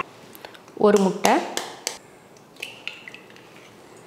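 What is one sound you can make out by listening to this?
An egg cracks against the rim of a bowl.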